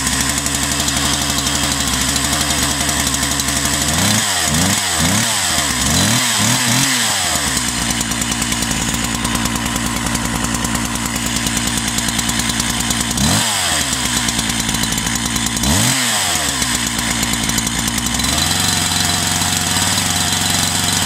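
A two-stroke chainsaw idles outdoors.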